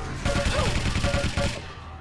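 A shotgun fires a loud blast.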